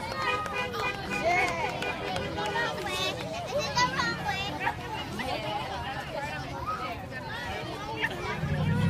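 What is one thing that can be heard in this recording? A crowd of children and adults chants and shouts together outdoors.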